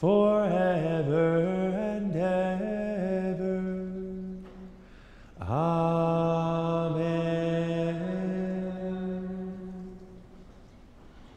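A man chants in a sung voice through a microphone, echoing in a large hall.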